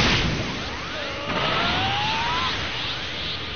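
A beam whooshes with a rising whistle.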